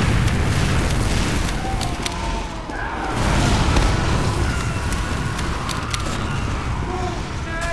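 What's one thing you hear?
Sharp clicks and clanks ring out now and then.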